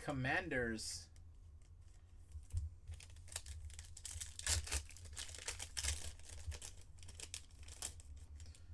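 A foil wrapper crinkles and tears as a pack is opened.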